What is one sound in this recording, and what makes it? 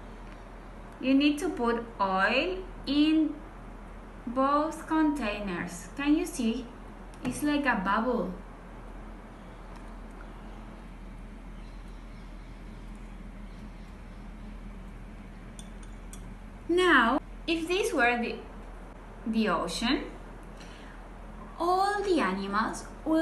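A young woman speaks calmly and close up.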